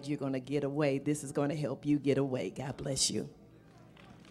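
A woman speaks through a microphone in an echoing hall.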